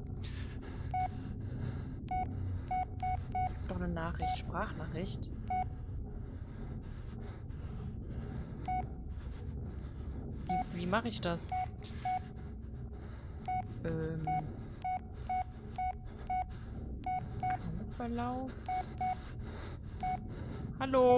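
A mobile phone beeps briefly each time a key is pressed.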